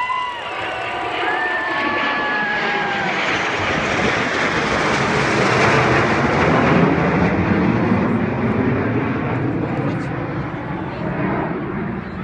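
A formation of jet planes roars overhead, growing loud and then slowly fading.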